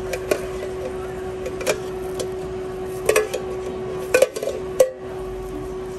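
Food slides and plops into a metal container.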